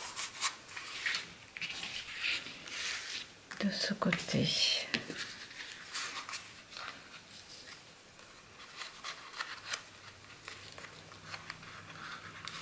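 Paper rustles and scrapes as hands handle a card.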